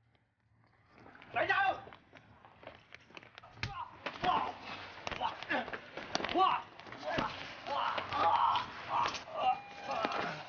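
A woman cries out and struggles.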